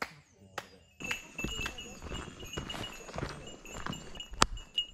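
Footsteps crunch on a dirt forest path.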